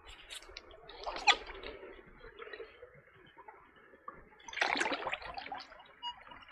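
A paddle splashes through shallow water.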